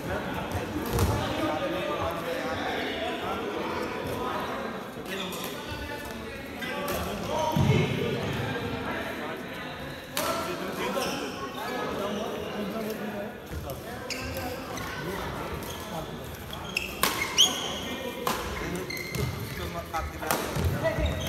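Rackets hit a shuttlecock with sharp pops.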